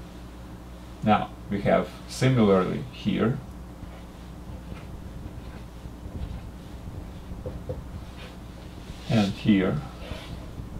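An elderly man speaks calmly and close by, in short bursts.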